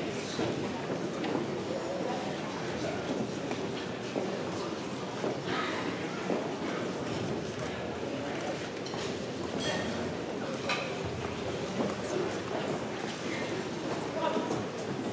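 A large crowd of adults chatters in a big, echoing hall.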